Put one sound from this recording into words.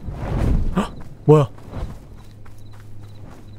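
Small footsteps patter on soft forest ground.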